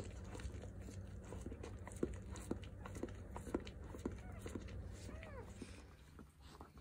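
A dog licks and chews wetly up close.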